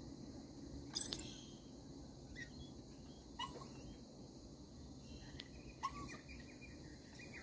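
Parrots screech in short, harsh bursts close by.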